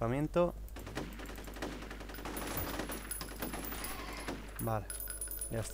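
Gunfire rattles in a burst.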